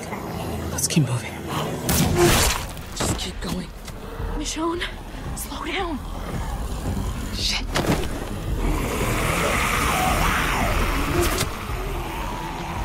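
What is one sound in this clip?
Zombies groan and snarl close by.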